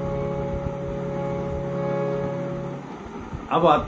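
A harmonium plays steady held chords.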